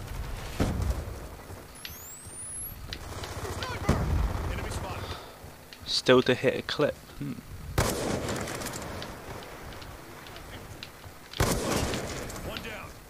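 Gunshots boom loudly, one at a time, each trailing off into an echo.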